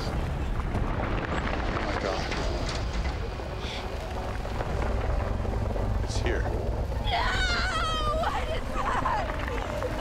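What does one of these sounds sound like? Window glass creaks and cracks under pressure.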